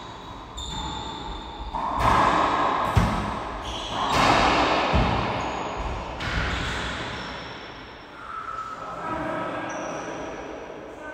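Rubber shoes squeak on a wooden court.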